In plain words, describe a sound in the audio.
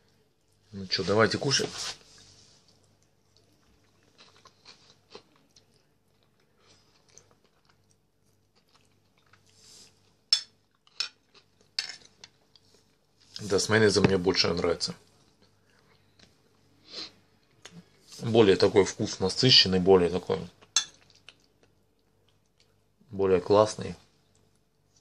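A man speaks calmly close by, between bites.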